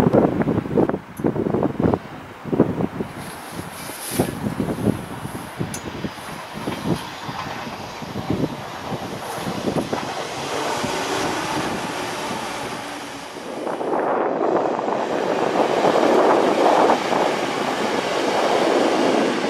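A diesel train rumbles past on the tracks.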